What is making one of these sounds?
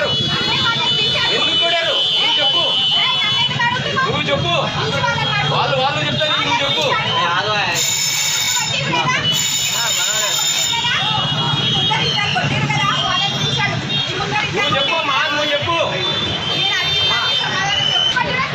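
Several voices overlap in a tense crowd.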